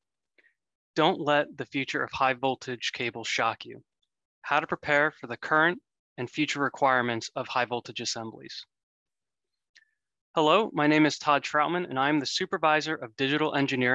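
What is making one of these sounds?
A young man speaks calmly into a microphone.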